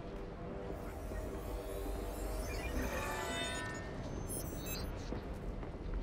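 A wrist device chirps and beeps electronically.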